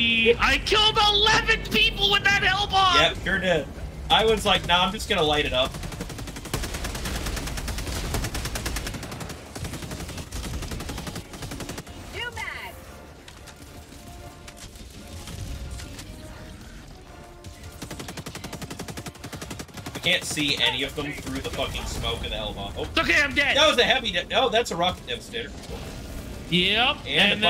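A man talks excitedly and laughs into a close microphone.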